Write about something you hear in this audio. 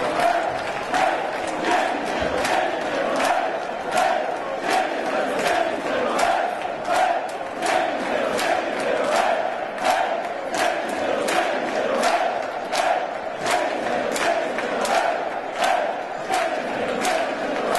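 A large crowd claps in rhythm in a big echoing arena.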